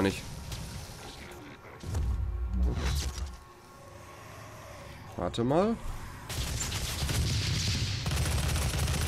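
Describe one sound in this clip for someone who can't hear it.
A man talks into a close microphone.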